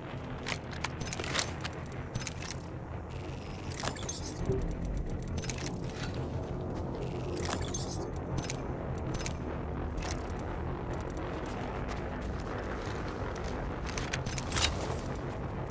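Short interface clicks and chimes sound as items are picked up.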